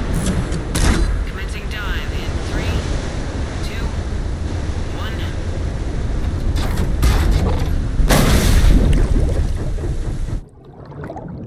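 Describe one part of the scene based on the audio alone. Rain pours heavily.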